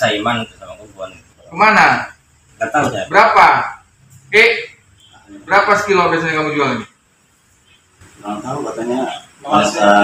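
A man speaks nearby in a low, hesitant voice, in short bursts.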